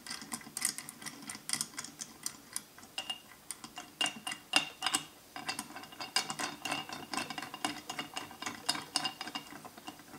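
Small metal parts click and tick rapidly.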